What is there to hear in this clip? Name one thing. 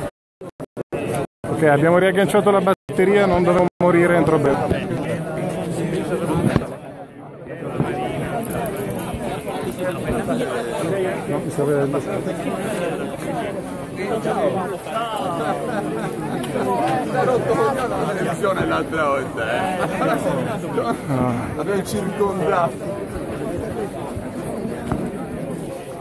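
A large crowd of men and women chants and talks outdoors.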